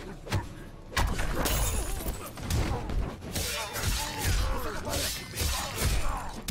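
Punches and kicks land with heavy thuds in a fight.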